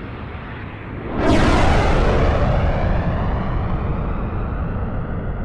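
Jet engines roar overhead, swelling sharply into a loud rushing rumble that slowly fades.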